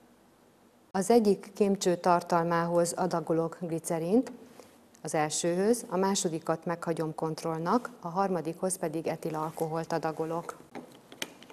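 A woman speaks calmly and clearly into a clip-on microphone.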